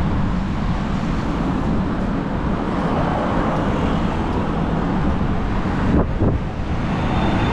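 A bus drives past and fades away.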